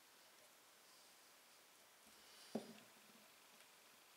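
A thin metal plate taps against wood.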